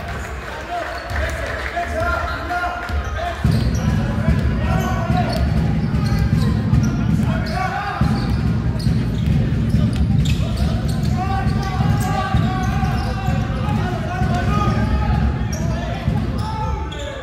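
Basketball shoes squeak sharply on a wooden floor in an echoing gym.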